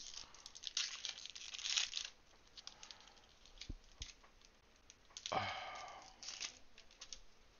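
A booster pack's foil wrapper crinkles as it is torn open.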